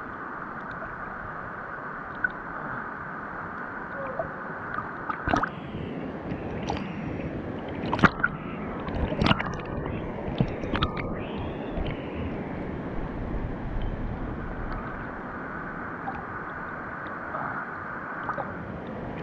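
Water splashes and sloshes as a person swims close by.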